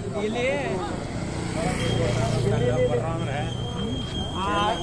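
A small motorcycle rides past.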